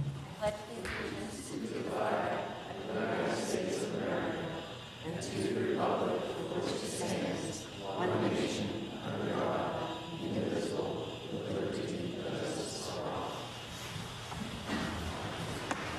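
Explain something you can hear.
A group of adults recites together in unison.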